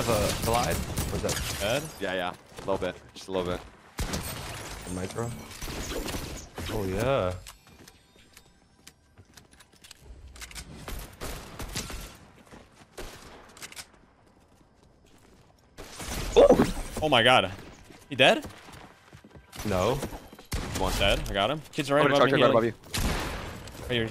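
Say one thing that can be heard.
Gunfire from a video game cracks in quick bursts.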